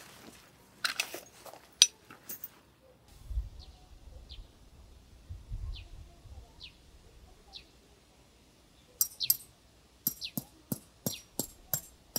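Metal tent pegs and poles clink and knock close by.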